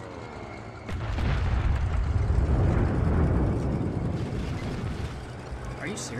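A loud explosion booms nearby and rumbles away.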